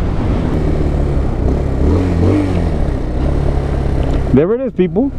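A motorcycle engine hums low and steady.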